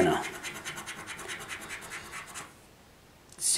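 A coin scratches rapidly across a scratch card.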